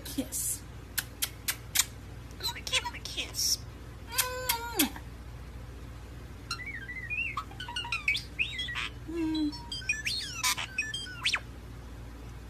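A starling makes quick, sharp clicks.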